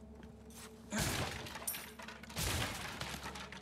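A wooden barrel smashes apart with a loud crack.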